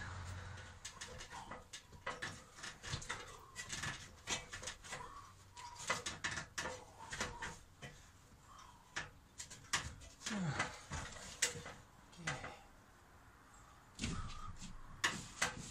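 Knocks and taps ring out on a wooden frame.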